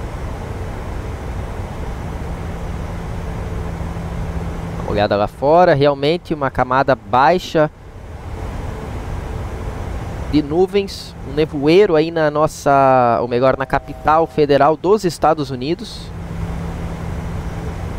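A steady low engine drone fills an aircraft cockpit.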